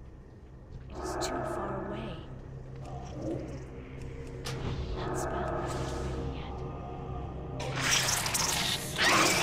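Blows and spell impacts thud and burst.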